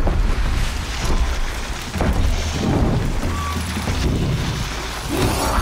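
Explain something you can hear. Footsteps crunch softly through deep snow.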